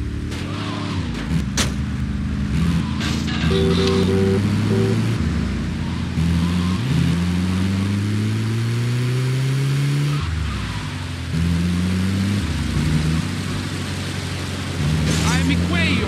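An engine revs up and down as a vehicle drives.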